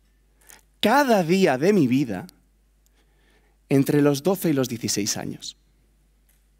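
A young man speaks animatedly through a microphone.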